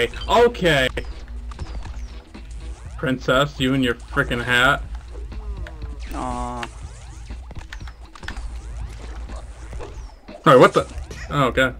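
A laser beam buzzes in a video game.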